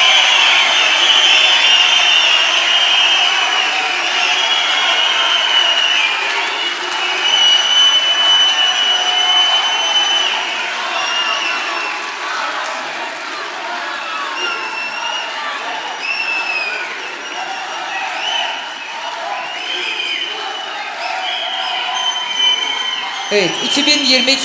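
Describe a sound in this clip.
A large crowd cheers and applauds steadily.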